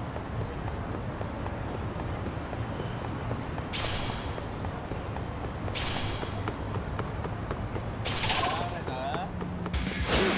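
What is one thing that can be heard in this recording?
Footsteps run quickly along pavement.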